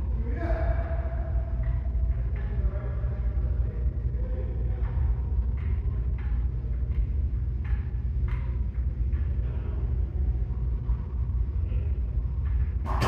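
Men talk casually nearby in an echoing room.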